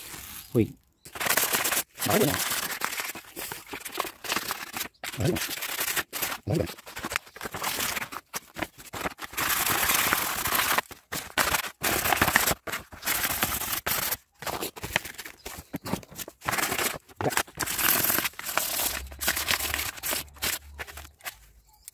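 Sandpaper rubs and rasps against metal in close, quick strokes.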